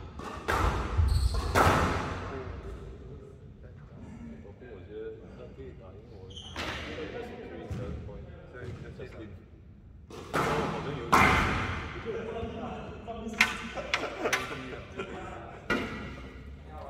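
A squash ball smacks hard against the walls, ringing in an echoing court.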